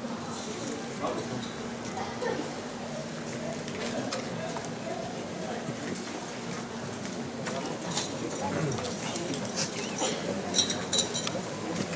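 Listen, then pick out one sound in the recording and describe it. Footsteps shuffle on a street.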